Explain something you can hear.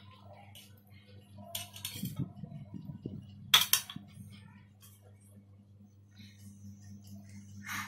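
A fork clinks against a metal bowl.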